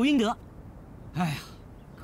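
A man replies calmly.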